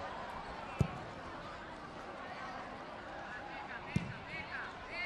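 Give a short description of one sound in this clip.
A football is kicked on a grass pitch.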